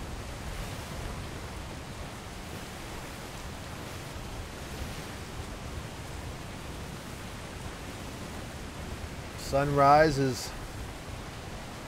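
Rough sea waves churn and splash steadily.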